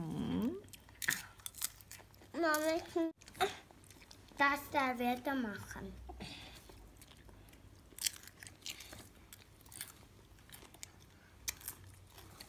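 Children crunch on popcorn.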